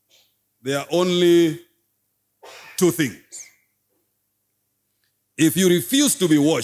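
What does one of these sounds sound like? A man speaks with animation into a microphone, with pauses.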